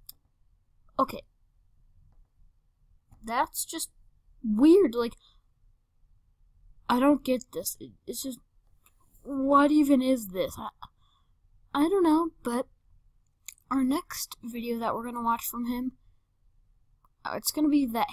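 A young boy talks with animation into a nearby microphone, in short bursts with pauses.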